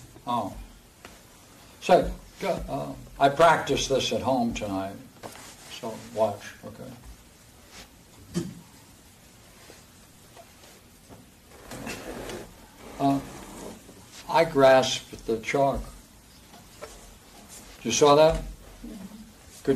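An elderly man lectures calmly with pauses, in a room with some echo.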